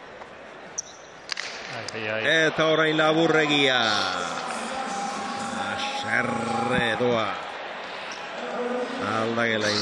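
A ball smacks against a wall, echoing in a large hall.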